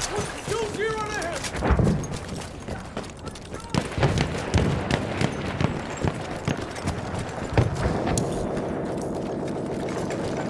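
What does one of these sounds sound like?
Footsteps crunch quickly over dirt and rubble.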